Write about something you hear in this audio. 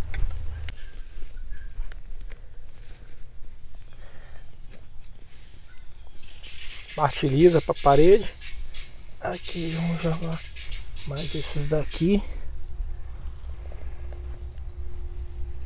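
Hands rustle through grass and loose soil.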